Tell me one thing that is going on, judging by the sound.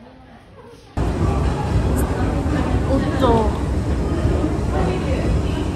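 A young woman talks casually close to the microphone.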